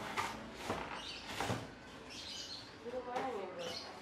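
Styrofoam packing squeaks and thuds as it is lifted out.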